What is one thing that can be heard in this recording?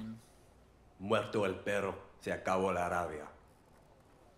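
A man speaks calmly in a game scene.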